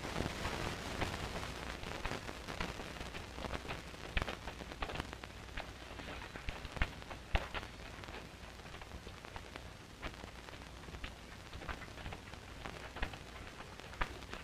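Footsteps crunch over rocky ground as several people walk.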